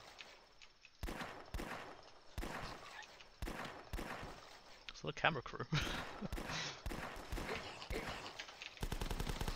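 Gunshots crack repeatedly, quick and sharp.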